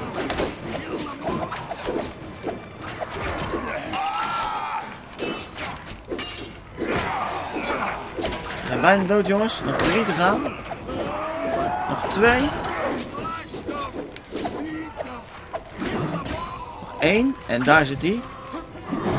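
Swords clash and clang in a scuffle.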